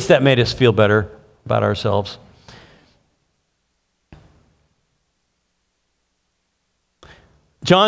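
A middle-aged man speaks calmly through a microphone in a large room, pausing between phrases.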